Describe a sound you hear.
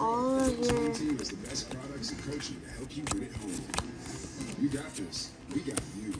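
Trading cards flick and rustle as they are handled.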